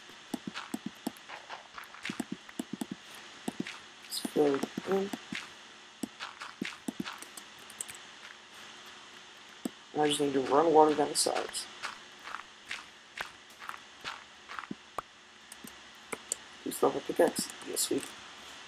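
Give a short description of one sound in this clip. Dirt and sand crunch in quick, repeated bursts as they are dug.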